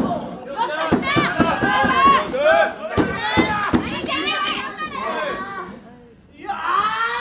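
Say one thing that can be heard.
Spectators shout and cheer excitedly.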